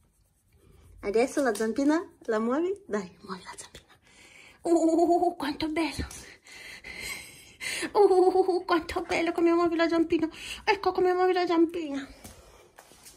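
A small dog whines and grumbles up close.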